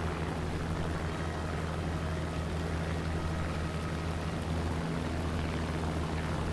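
A propeller plane's engine drones steadily in flight.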